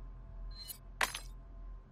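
A bright jingling chime rings out once.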